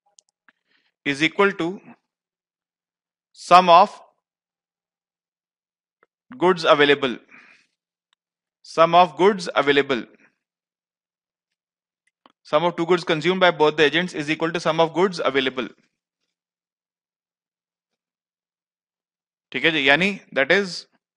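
A man speaks calmly through a headset microphone, in short bursts with pauses.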